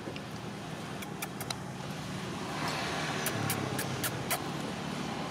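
A baby monkey squeaks sharply several times.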